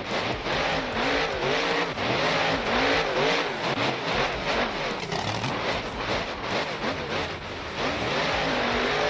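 A monster truck engine revs and roars, rising and falling in pitch.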